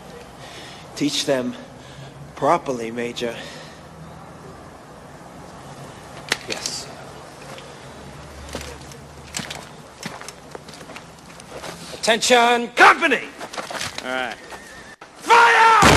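A man shouts orders loudly outdoors.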